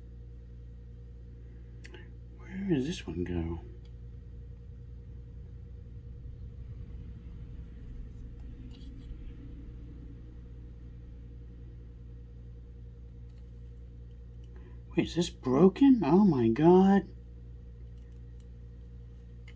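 Small plastic parts click in a young man's hands.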